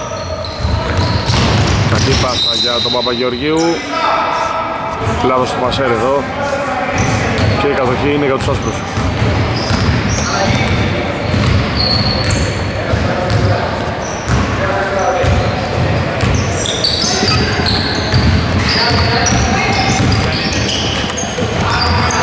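A basketball bounces with dull thuds on the floor.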